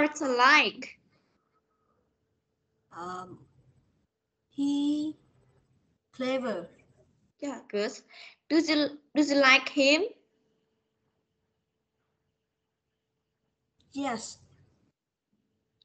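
A woman speaks slowly and clearly through an online call, with long pauses.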